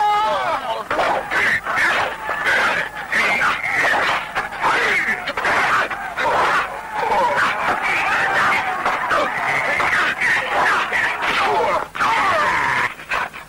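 Punches and kicks land with sharp thuds during a fight.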